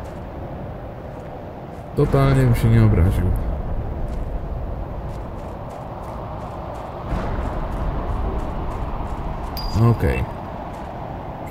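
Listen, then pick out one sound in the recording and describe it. Footsteps crunch steadily on dry ground.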